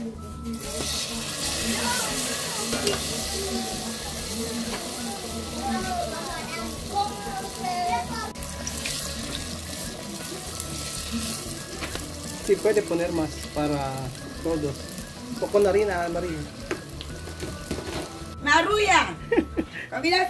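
Oil sizzles and crackles steadily as food fries.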